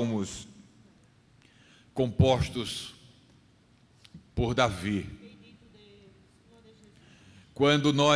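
A middle-aged man reads aloud slowly through a microphone, with pauses, in a room that echoes a little.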